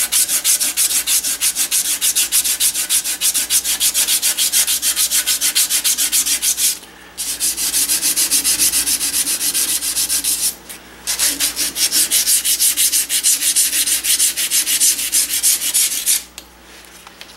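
Abrasive cloth rubs rapidly back and forth on a metal tube.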